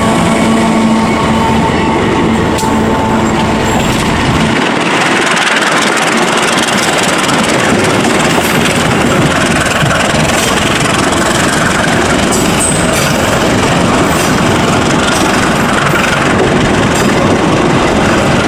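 A passenger train rolls past with a loud, steady rumble of wheels on rails.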